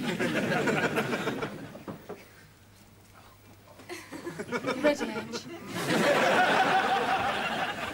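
A crowd of people chatter loudly in a room.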